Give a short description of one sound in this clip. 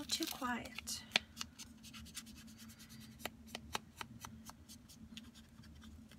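A foam ink tool dabs repeatedly against paper.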